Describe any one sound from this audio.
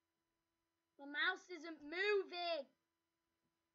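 A young boy speaks briefly and expressively, close to a microphone.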